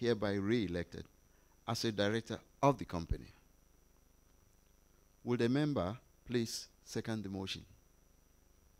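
An elderly man speaks calmly into a microphone, reading out.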